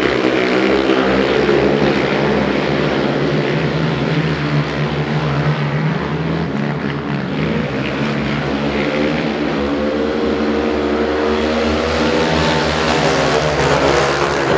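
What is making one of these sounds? Motorcycle engines roar loudly.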